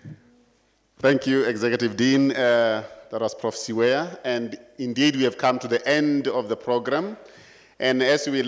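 A man speaks into a microphone in a loud, formal voice.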